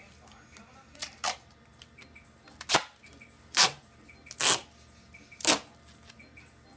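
Adhesive tape is pulled off a roll in short, loud rips.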